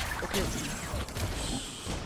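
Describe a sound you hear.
A magic spell whooshes and crackles.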